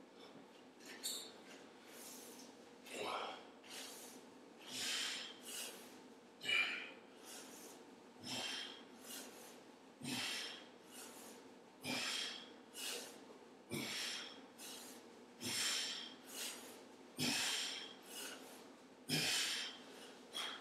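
A man breathes out hard in a steady rhythm.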